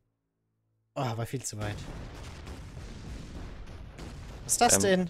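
An explosion bursts with a rumbling blast.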